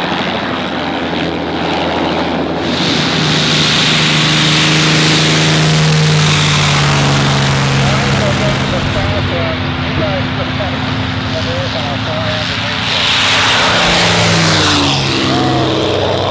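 A propeller plane engine roars loudly nearby.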